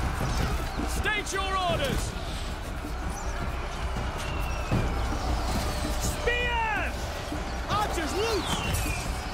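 Soldiers cry out in pain and shout.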